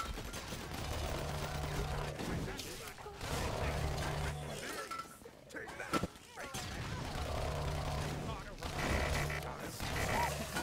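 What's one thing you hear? A rapid-fire gun blasts in bursts.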